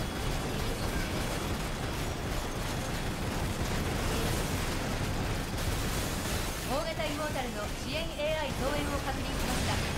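Explosions burst and rumble.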